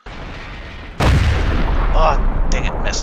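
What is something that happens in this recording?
A tank cannon fires with a loud, heavy boom.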